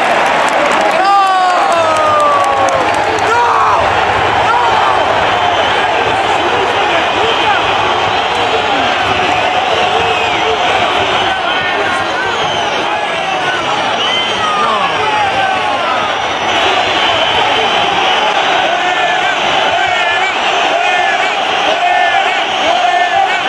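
Spectators nearby whistle shrilly in protest.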